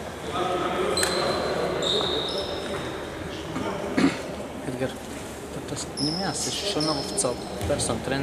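A referee's whistle blows short, sharp blasts in an echoing hall.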